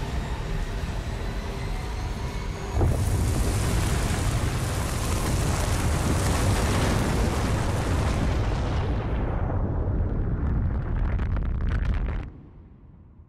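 A strong wind roars and howls.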